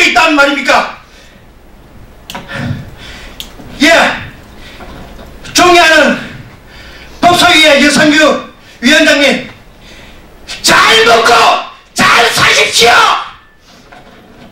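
A middle-aged man shouts forcefully into a microphone in short bursts.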